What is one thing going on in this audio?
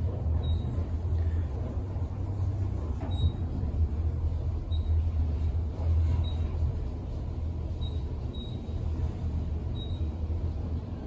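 A traction elevator car hums and rumbles as it rises.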